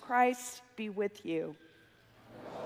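A middle-aged woman speaks into a microphone in a large echoing hall.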